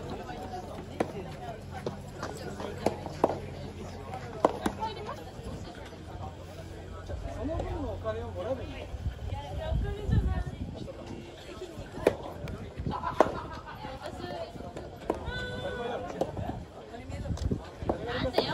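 Tennis rackets hit a ball with sharp pops, outdoors.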